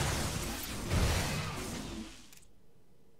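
Video game combat sounds clash and crackle.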